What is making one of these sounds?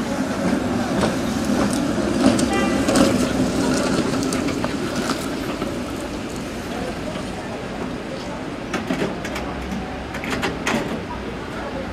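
Wheels clatter and squeal on the rails.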